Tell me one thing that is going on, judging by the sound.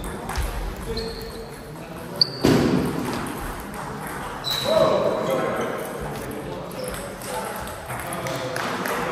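Table tennis balls click against paddles and tables.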